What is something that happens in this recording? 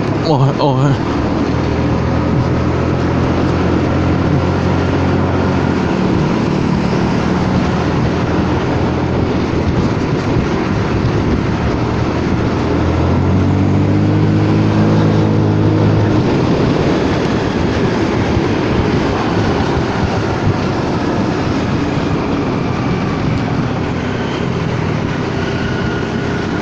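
Wind rushes past over the ride.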